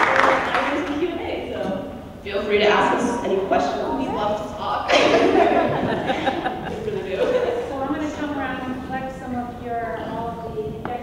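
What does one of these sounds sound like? A young woman speaks into a microphone in a hall.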